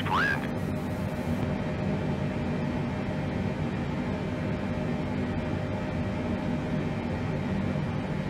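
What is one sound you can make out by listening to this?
Aircraft engines drone in a low, steady hum.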